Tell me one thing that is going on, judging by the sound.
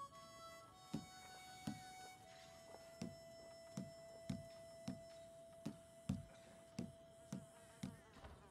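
Short menu clicks tick at a steady pace.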